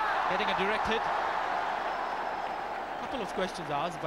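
A large crowd cheers loudly, then dies down.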